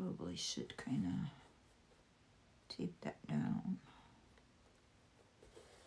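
Paper rustles softly under fingers.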